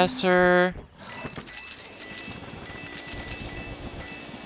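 Coins jingle and clink.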